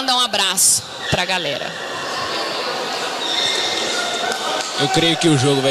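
Men shout and call out in a large echoing hall.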